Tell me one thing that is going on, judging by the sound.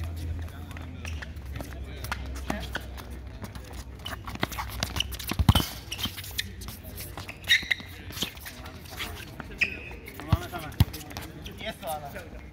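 A ball is kicked with dull thuds on a hard court.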